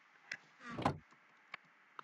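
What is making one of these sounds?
A wooden chest creaks open in a video game.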